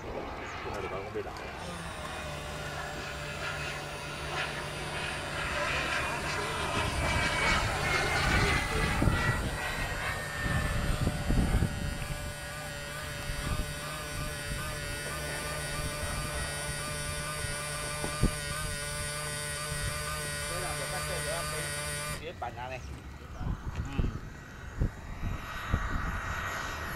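A jet engine whines high overhead, rising and falling as the jet passes.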